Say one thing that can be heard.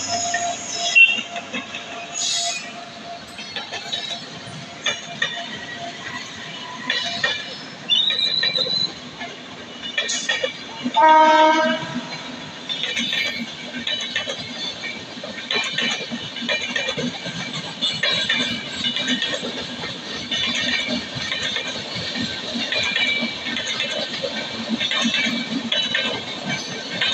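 A passenger train rolls past nearby with wheels clattering rhythmically over rail joints.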